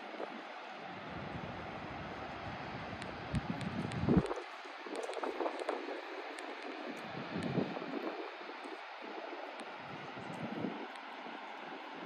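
Wind gusts blow across the microphone outdoors.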